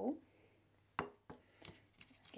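A ceramic bowl knocks as it is set down on a table.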